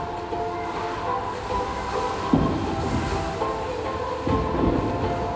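A bowling ball thuds onto a lane and rumbles as it rolls.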